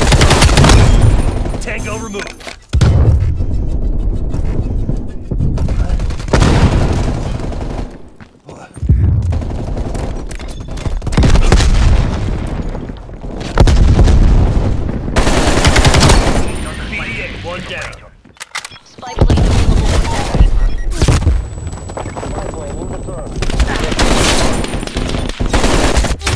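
Rifle gunfire rattles in loud bursts.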